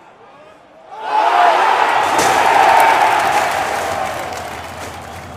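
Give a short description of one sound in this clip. A large stadium crowd roars loudly as a shot is taken at goal.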